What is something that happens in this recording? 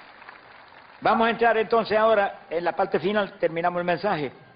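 An elderly man preaches loudly and with fervour through a microphone and loudspeakers.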